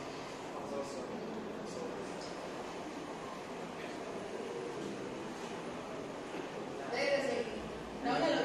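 A woman speaks calmly, explaining, close by.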